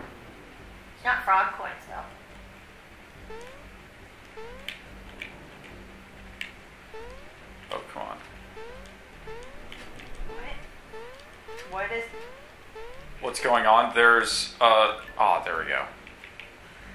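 Bright game sound effects chime in quick bursts.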